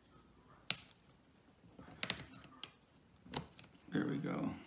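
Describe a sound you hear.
A plastic pry tool clicks and snaps against a laptop case.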